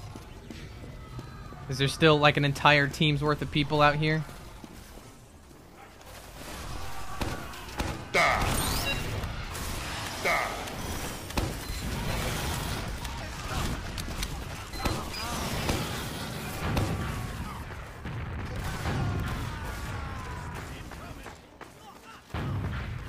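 Footsteps thud on hard floors and wooden stairs.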